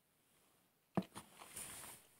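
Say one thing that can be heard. A glass knocks down onto a table.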